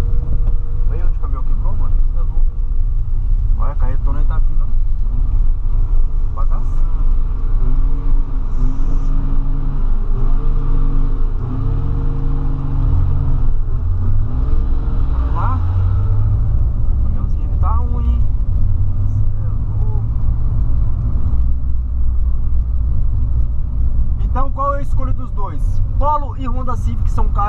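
A young man talks nearby over the engine noise.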